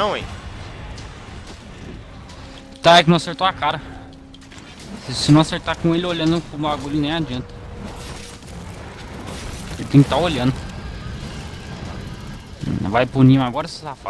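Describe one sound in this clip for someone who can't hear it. Heavy weapon blows thud against a monster's hide.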